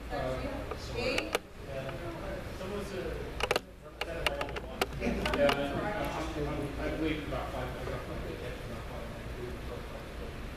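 A man speaks to a room, heard from a short distance.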